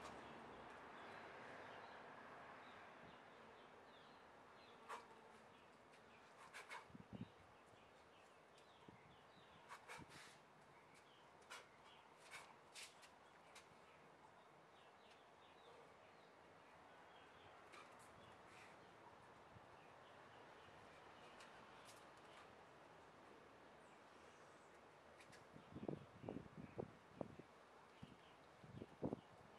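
Bare feet shuffle and pat on concrete outdoors.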